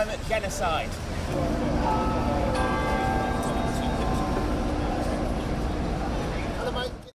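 Traffic rumbles steadily on a city street outdoors.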